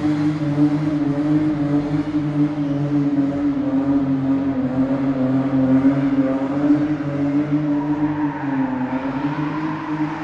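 Tyres screech as they spin on concrete.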